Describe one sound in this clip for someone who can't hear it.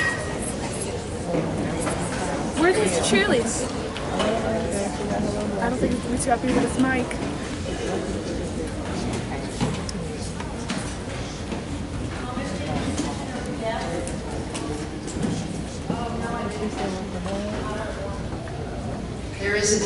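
A large audience chatters and murmurs in an echoing hall.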